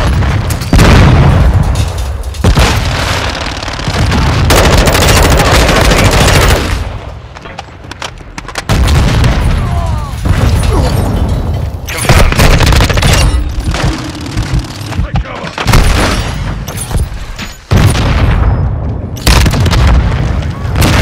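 Rifle gunfire bursts loudly and rapidly.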